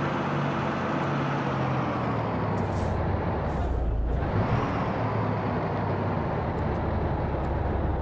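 A bus engine hums steadily as the bus drives along.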